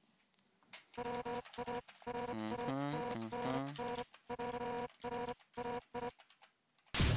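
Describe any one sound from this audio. Quick electronic blips patter in a rapid string.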